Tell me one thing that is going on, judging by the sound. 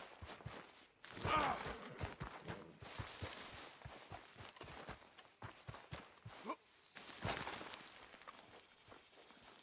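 Footsteps tread through grass and dirt at a steady walking pace.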